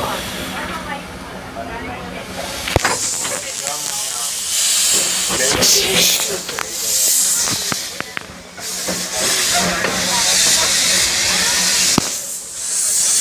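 A small steam locomotive chuffs along ahead.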